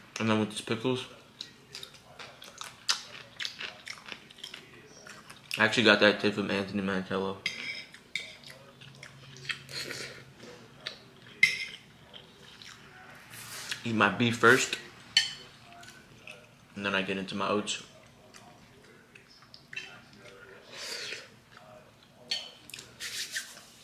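A young man crunches and chews food close by.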